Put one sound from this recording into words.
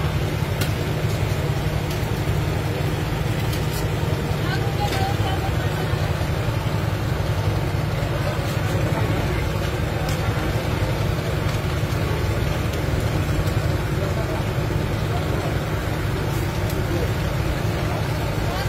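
A metal spatula scrapes and taps on a hot griddle.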